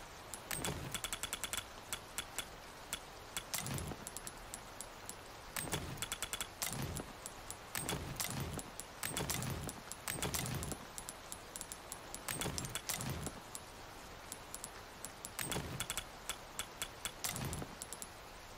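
Short menu clicks and ticks sound in quick bursts.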